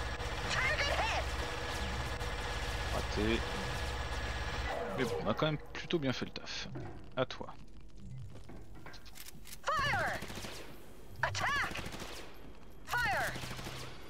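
Guns fire in short bursts during a battle.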